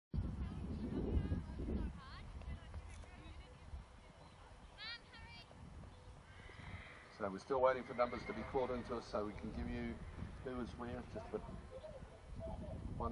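A horse canters with soft hoofbeats on grass.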